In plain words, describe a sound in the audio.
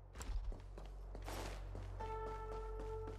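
Footsteps patter up stone stairs.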